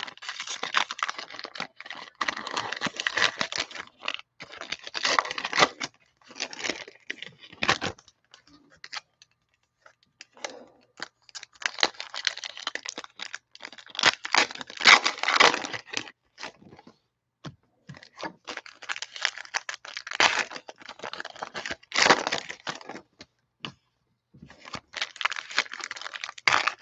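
Foil card packs crinkle and tear open close by.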